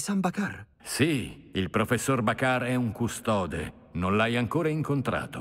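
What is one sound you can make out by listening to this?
An elderly man answers calmly.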